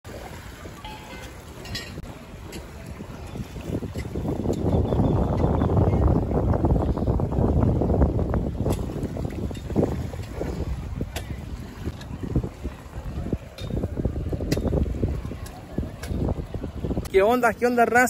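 Gentle waves lap against a harbour wall.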